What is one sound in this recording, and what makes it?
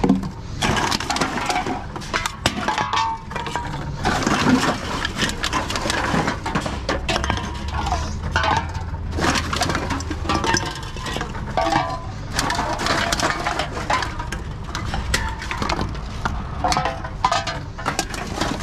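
Cans and bottles clatter together as a hand rummages through them.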